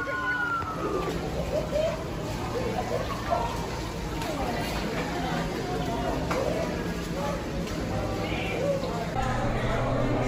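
Water rushes and splashes across a floor.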